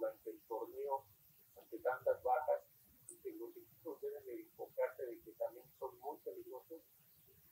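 A young man speaks calmly into a microphone, close by.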